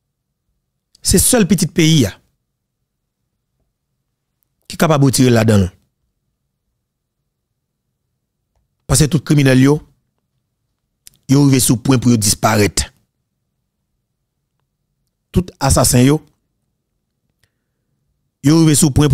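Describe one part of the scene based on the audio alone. A man speaks into a close microphone in short, calm bursts with pauses between them.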